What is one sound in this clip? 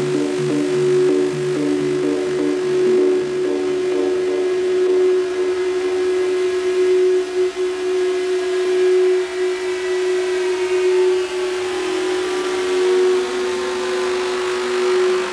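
Loud electronic dance music plays through big speakers with a steady pulsing synth.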